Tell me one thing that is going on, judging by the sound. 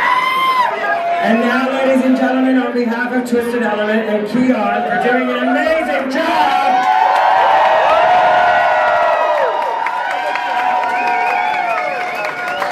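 A woman sings into a microphone over loudspeakers in a room that echoes.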